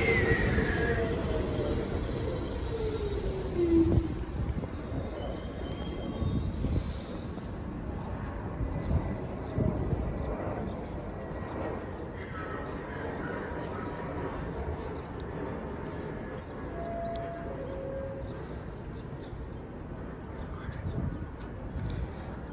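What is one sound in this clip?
A subway train approaches slowly and rumbles into the station, squealing faintly.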